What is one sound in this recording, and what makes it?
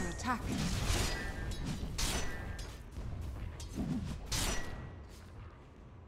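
Spell effects and blows crash loudly in a game battle.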